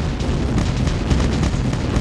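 Game gunfire crackles in short bursts.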